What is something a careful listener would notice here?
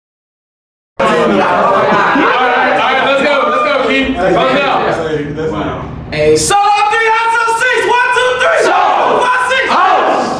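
A group of young men chant and shout together.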